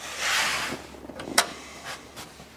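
A metal latch clicks as a finger presses it.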